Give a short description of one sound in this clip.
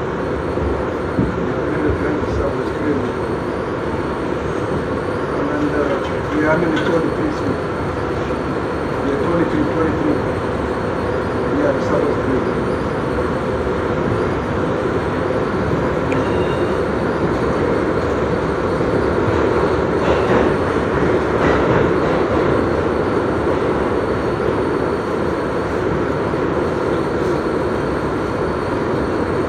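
A subway train rumbles and rattles loudly along the tracks.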